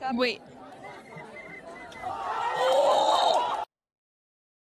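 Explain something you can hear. A crowd shouts and screams outdoors.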